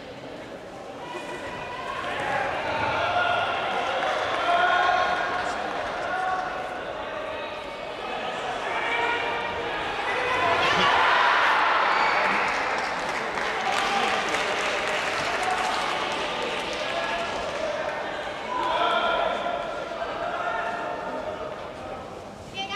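Men shout encouragement in a large echoing hall.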